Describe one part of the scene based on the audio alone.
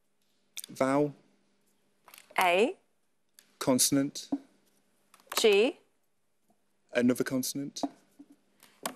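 A young woman speaks clearly in short bursts through a microphone.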